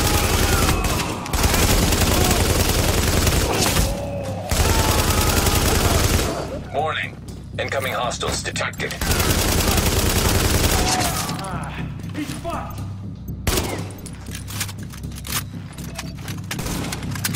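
Rifle gunfire crackles in rapid bursts.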